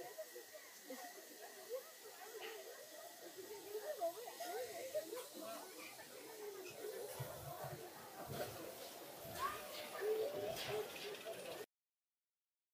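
Men, women and children chatter nearby outdoors.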